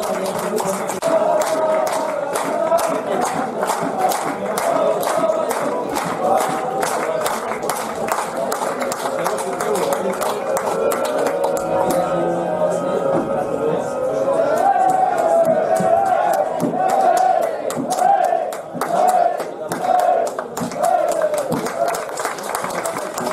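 A group of players clap their hands.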